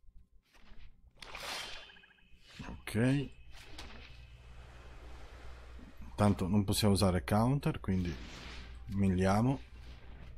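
Digital whooshes and chimes sound as cards are played.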